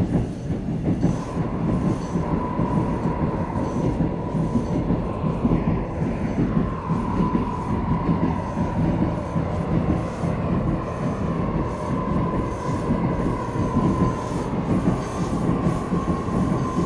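A train's electric motor whines with a steady high hum.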